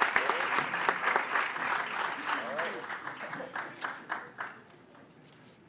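A crowd claps loudly in a large hall, then the clapping fades away.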